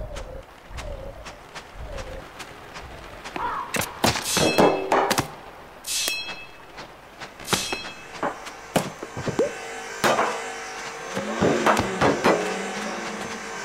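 Wings flap in short, quick bursts.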